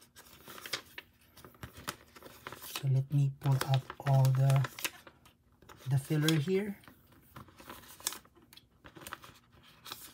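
Plastic album pages crinkle as they are turned.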